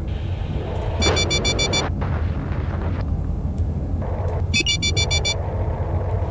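Electronic beeping tones play in short bursts.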